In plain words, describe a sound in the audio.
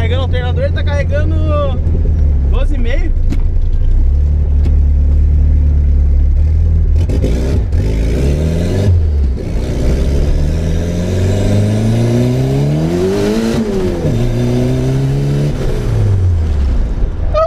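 A car engine hums, then revs up and down as gears shift.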